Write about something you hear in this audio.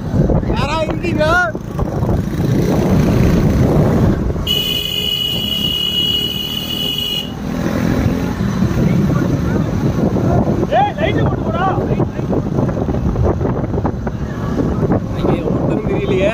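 A motorcycle engine hums steadily up close.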